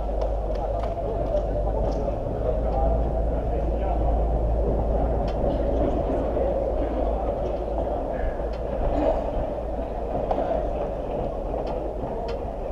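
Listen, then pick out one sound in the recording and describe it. Men call out to each other across an echoing indoor pitch.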